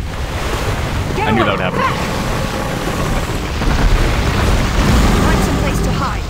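A flaming blade roars and crackles with fire.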